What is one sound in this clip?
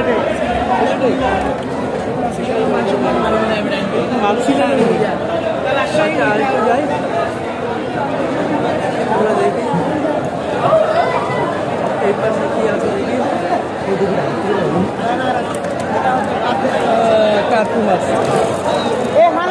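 A crowd of men chatter loudly all around.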